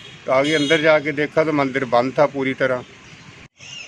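A middle-aged man speaks into a microphone close up.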